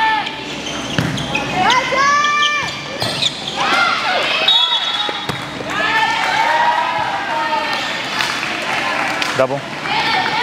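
A volleyball thumps off hands.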